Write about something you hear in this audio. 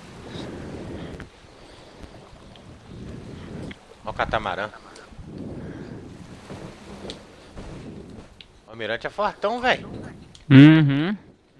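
Oars splash softly in water.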